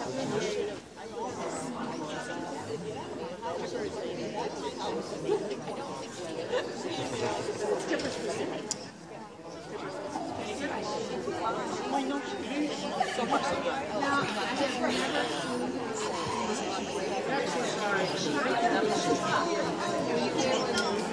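Several adults chatter indistinctly in a large echoing hall.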